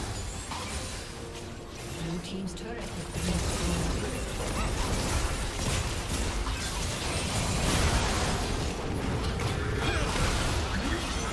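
Spell effects whoosh and crackle in a fantasy video game battle.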